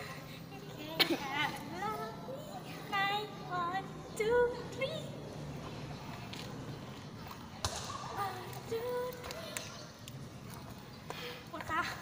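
A young girl talks with animation nearby.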